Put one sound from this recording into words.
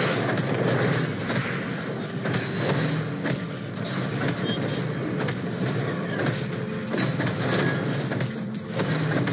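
Sharp game combat hits land again and again in a steady rhythm.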